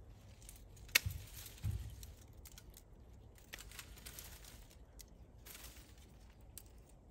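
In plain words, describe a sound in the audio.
Leaves rustle as branches are handled.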